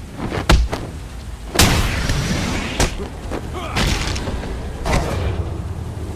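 Heavy punches land with loud thuds.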